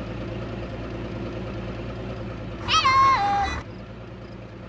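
A truck engine idles with a low, steady rumble.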